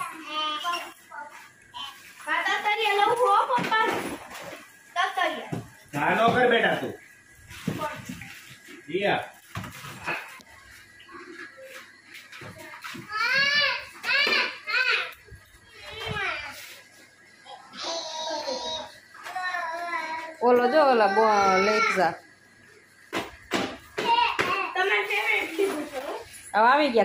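Young children chatter and squeal with high voices close by.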